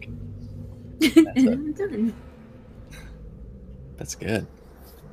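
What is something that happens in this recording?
A young woman laughs over an online call.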